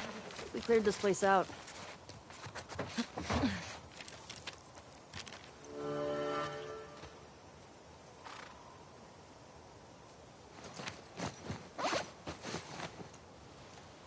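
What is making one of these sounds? Tall grass rustles as someone walks through it.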